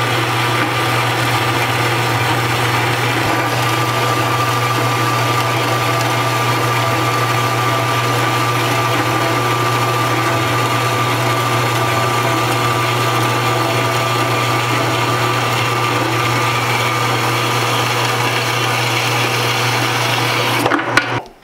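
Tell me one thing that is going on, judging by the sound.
A band saw cuts steadily through a metal bar with a loud, even hum and a high grinding whine.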